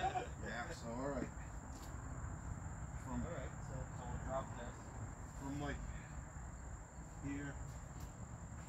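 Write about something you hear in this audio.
A man talks casually at a distance outdoors.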